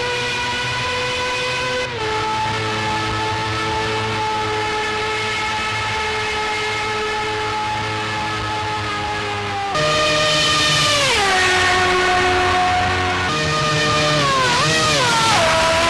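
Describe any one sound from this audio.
A single-seater racing car engine screams at high revs.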